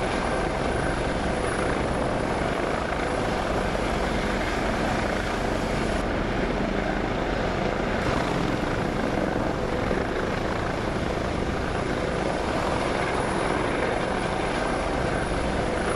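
A helicopter's rotor drones and whirs steadily.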